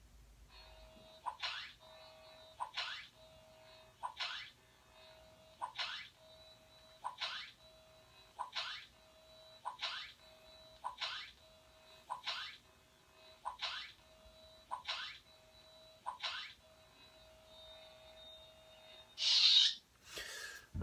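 A glowing tube hums with a steady electric buzz.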